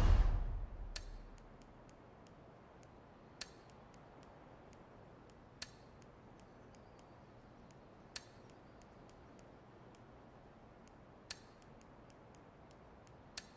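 Short, soft menu clicks tick again and again.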